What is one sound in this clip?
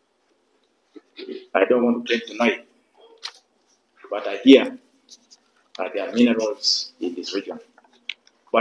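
A man speaks calmly and steadily into a microphone, close by.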